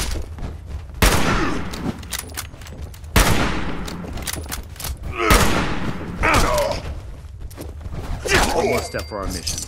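Loud rifle shots ring out with echoing booms.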